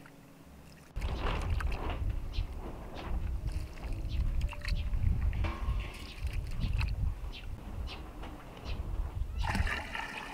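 Hands swish and squeeze rice in water.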